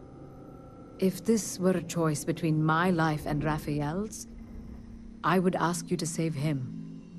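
A woman speaks calmly and earnestly, close by.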